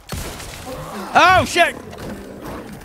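A wolf snarls loudly.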